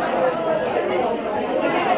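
Spectators chatter near the microphone.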